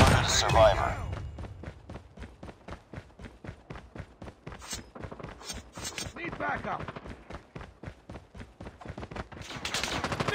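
Footsteps run quickly on hard ground.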